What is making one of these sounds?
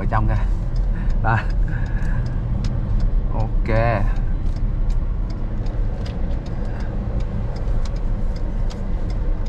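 A car engine rumbles steadily from inside the cabin.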